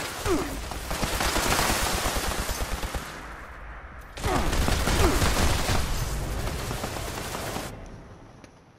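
Rapid gunfire blasts loudly and continuously.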